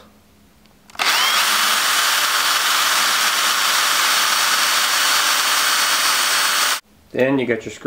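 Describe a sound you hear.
A power drill whirs loudly and steadily.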